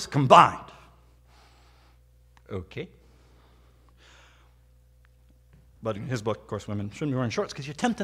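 A man preaches with animation through a microphone in a large room, pausing between phrases.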